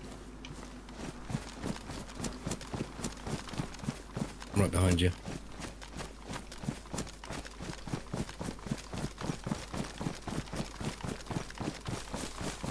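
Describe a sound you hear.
Footsteps rustle steadily through tall grass.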